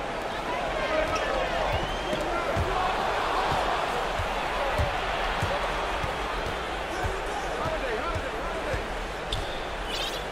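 A basketball bounces with dull thuds on the court.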